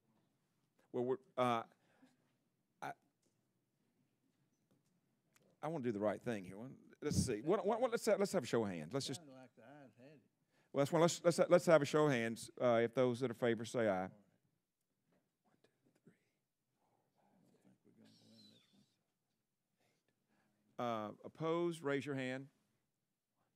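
An older man speaks calmly into a microphone.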